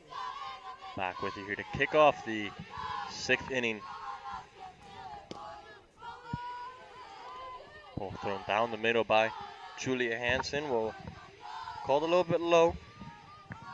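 Young women chant and cheer loudly in rhythm outdoors.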